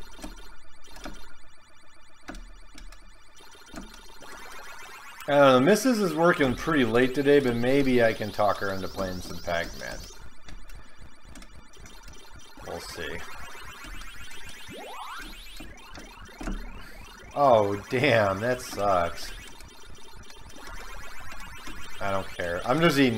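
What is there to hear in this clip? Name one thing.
Electronic sound effects of a Ms. Pac-Man arcade game play.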